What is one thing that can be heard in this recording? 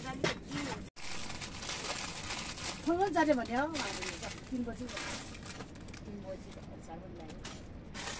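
A plastic packet crinkles in a woman's hands.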